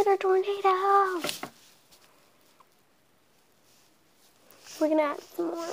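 A young girl talks in a high, sing-song voice close by.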